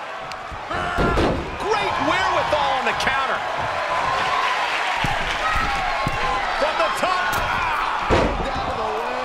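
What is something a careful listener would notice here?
A heavy thud of a body slamming onto a wrestling mat.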